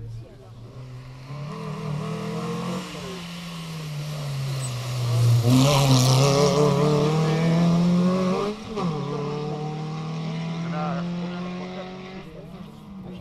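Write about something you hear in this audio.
A rally car engine revs hard and roars past close by.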